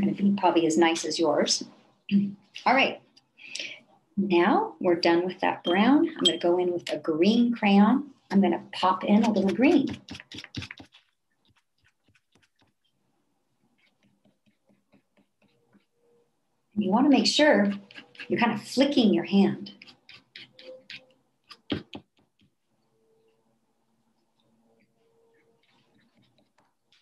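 A crayon scratches softly on paper.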